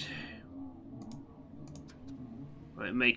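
Short menu clicks tick as a selection moves.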